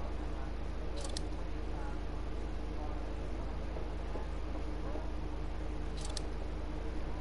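A menu gives short electronic clicks.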